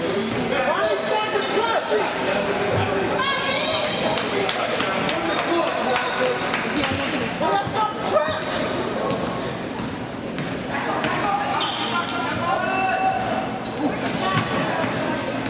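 Spectators and players shout and cheer loudly.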